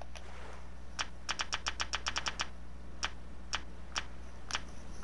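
Quick soft clicks tick in a rapid series.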